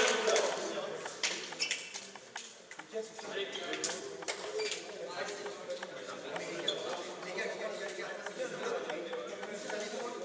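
Several young men chat at a distance in an echoing hall.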